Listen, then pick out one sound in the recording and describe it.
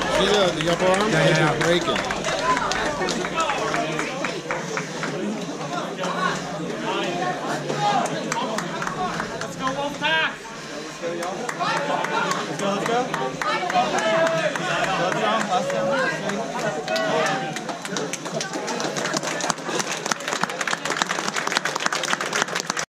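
A crowd of young men and women cheers and shouts loudly in a large echoing room.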